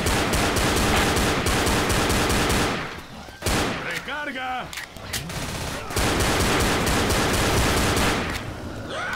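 A pistol fires in rapid shots.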